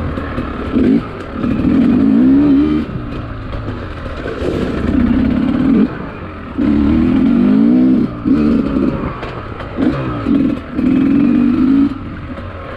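A dirt bike engine revs up and down in bursts close by.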